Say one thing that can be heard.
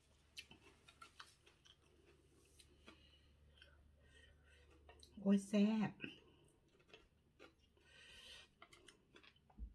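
A woman crunches fresh lettuce while eating.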